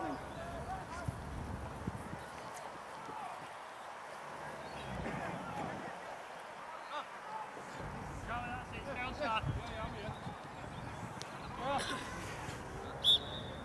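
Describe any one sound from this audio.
Young men shout to each other outdoors, some distance away.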